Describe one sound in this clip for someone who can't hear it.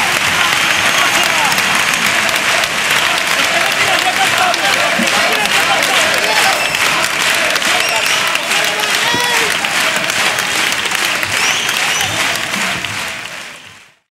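A crowd claps and cheers loudly in a large hall.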